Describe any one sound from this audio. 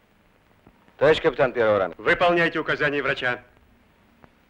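A man speaks with feeling, asking a question.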